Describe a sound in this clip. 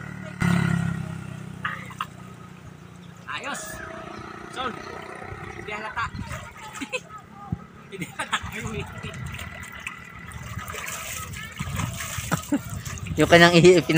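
Water splashes as a man bathes in shallow water.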